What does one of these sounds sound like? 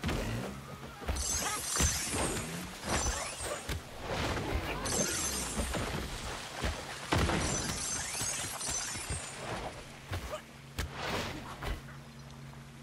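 Flames roar and crackle in bursts.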